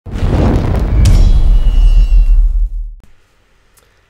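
Flames roar up with a loud whoosh.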